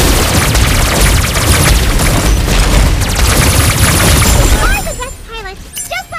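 Energy blasts fire and explode in quick bursts.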